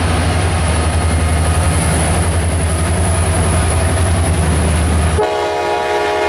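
Diesel locomotives rumble loudly as they pass close by.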